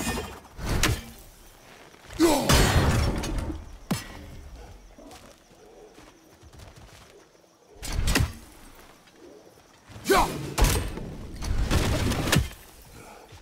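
An axe strikes wood with a heavy thud.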